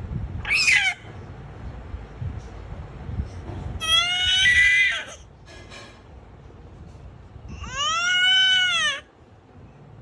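A baby squeals in short, high bursts.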